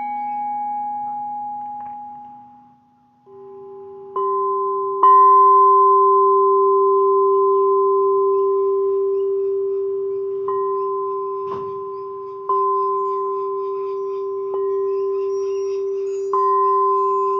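Struck singing bowls ring out in long, humming tones that slowly fade.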